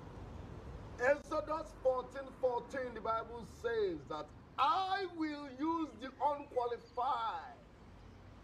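A man talks loudly and emotionally, crying out, close by.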